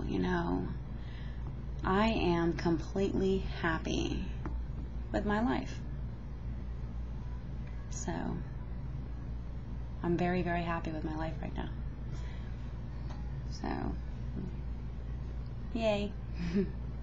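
A woman talks casually and close to a microphone, with pauses.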